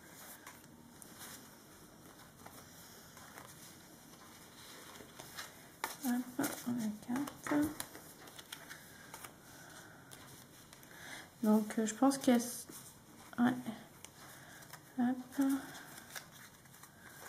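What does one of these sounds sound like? Stiff paper cards rustle and slide as they are laid down.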